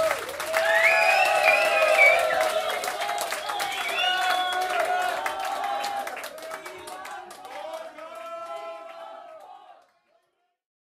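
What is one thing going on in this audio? A live band plays a song loudly and fades out.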